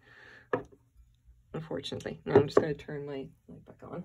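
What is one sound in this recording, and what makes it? A glass bowl is set down on a wooden table with a soft knock.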